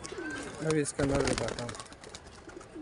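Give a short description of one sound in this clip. A pigeon's wings flap loudly as it takes off.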